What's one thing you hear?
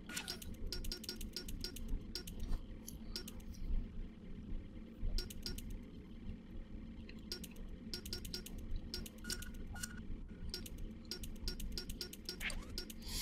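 Short electronic menu clicks tick quickly in bursts.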